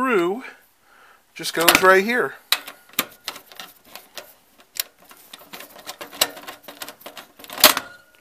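A screwdriver clicks and scrapes as it turns a screw in metal.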